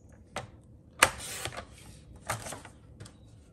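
Cardstock rustles as it is slid across a cutting board.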